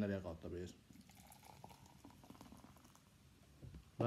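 A drink pours into a glass.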